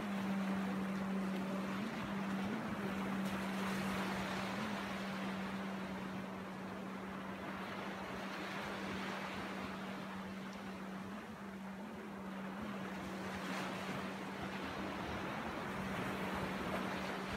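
Small waves break and wash up onto a sandy shore.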